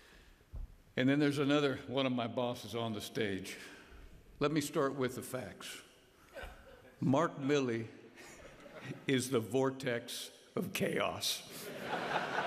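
A man speaks calmly into a microphone over loudspeakers in a large hall.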